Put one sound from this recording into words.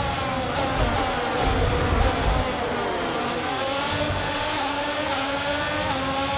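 Other racing cars roar nearby.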